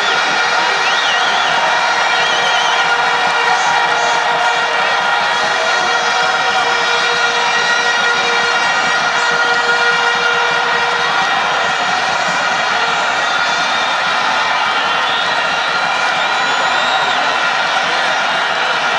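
A large stadium crowd cheers and roars steadily outdoors.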